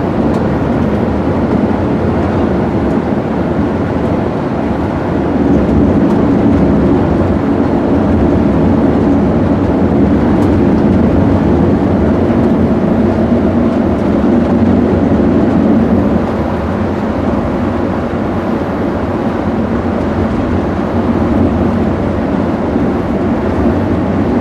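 A vehicle's engine drones steadily as it drives along a road.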